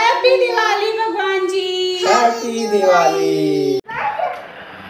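A man and a woman sing a prayer together close by.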